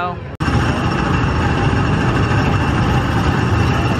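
Small go-kart engines rumble and buzz nearby.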